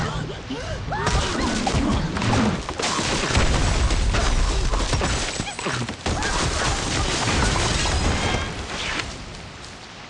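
Wooden and glass blocks crash, smash and tumble down.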